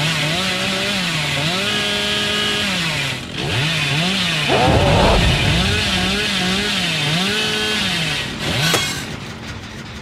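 A chainsaw engine revs up and down.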